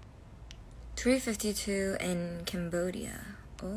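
A young woman speaks up close in a high, playful voice.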